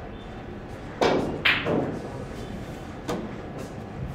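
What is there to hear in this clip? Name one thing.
Billiard balls clack sharply together.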